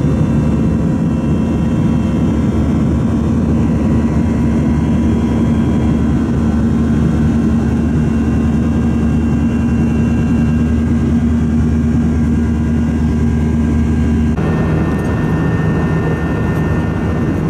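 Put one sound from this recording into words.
A jet engine roars steadily with a low drone and hum.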